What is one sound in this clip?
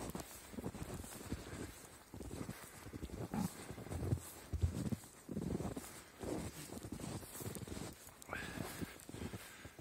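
Footsteps crunch through snow close by.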